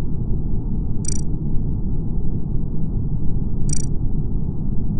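Short electronic blips sound as game items are picked.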